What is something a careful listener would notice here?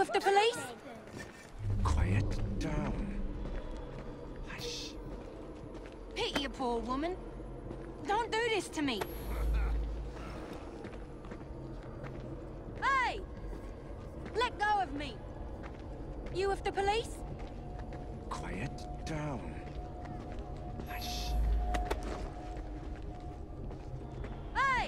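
Footsteps tread on cobblestones.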